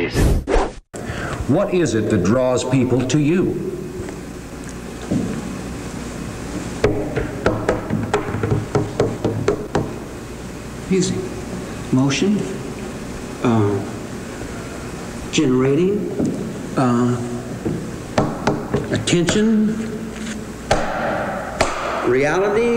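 A man speaks with animation on an old recording, heard through a microphone.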